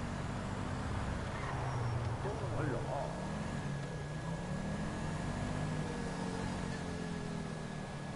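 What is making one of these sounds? A car engine hums steadily as it drives along.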